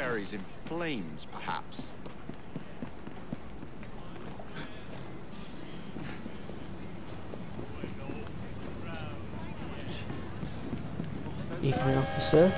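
Footsteps run quickly over wooden boards.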